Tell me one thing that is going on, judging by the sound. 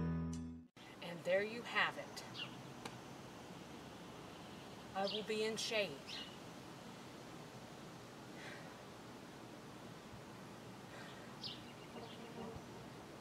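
A woman speaks calmly outdoors, close by.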